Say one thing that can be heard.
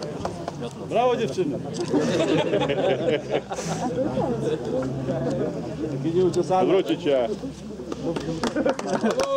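Men and women chat and laugh nearby.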